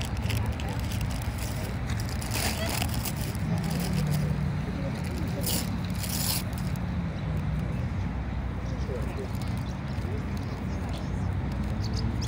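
Paper rustles as a pastry box is handled.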